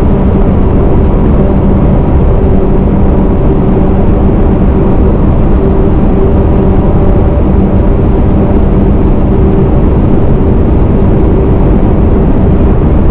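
Wind buffets loudly against the vehicle.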